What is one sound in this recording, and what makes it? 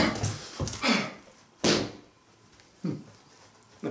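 A whiteboard is lifted and knocks into place.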